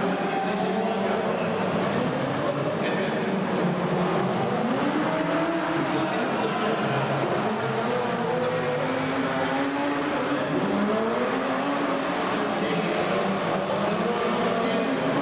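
Several motorcycle engines roar and rev in a large echoing hall.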